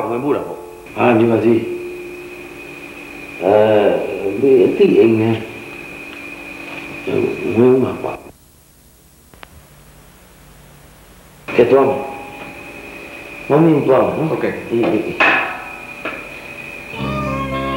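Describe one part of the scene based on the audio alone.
A middle-aged man talks with animation, heard close.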